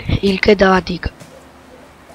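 A boy speaks loudly up close.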